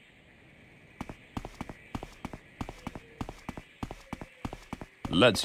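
Footsteps thud quickly and evenly on the ground.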